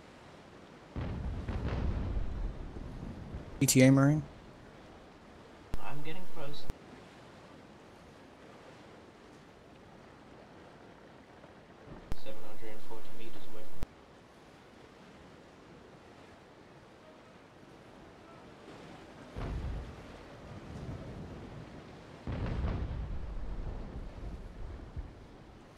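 Cannons boom and rumble in the distance.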